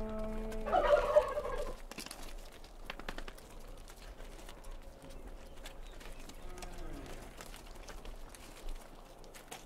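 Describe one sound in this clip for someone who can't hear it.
A goat chews and tears grass.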